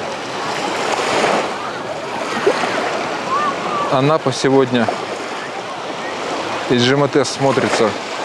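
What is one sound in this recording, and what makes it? A crowd of bathers chatters and splashes in the distance outdoors.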